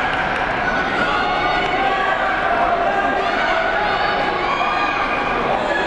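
A crowd of men and women chatters and calls out all around in a large echoing hall.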